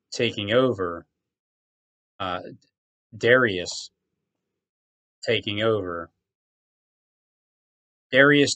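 A man speaks close to a microphone in short, calm phrases with pauses.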